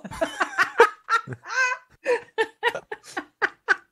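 A man laughs through an online call.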